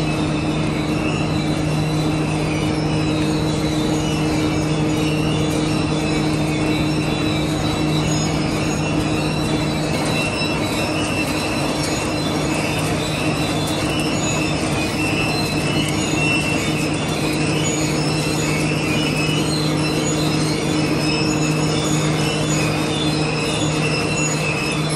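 Steel strip rattles and scrapes as it feeds through rollers.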